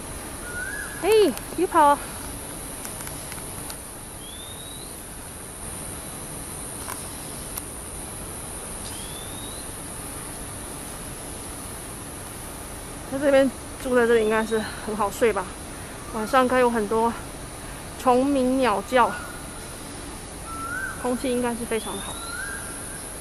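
A rooster crows loudly nearby, several times.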